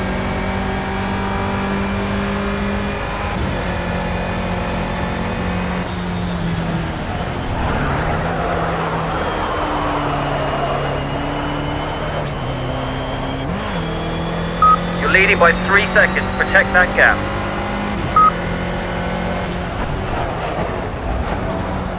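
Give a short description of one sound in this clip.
A racing car engine revs high and drops in pitch with each gear change.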